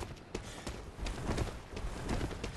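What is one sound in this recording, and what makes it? Heavy blows thud and clang in a fight.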